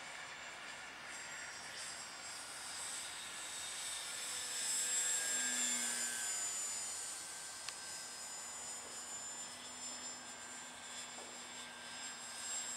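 A model airplane engine whines high overhead, growing louder as it passes close and then fading.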